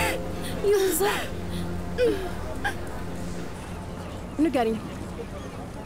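A woman speaks in an upset, pleading voice close by.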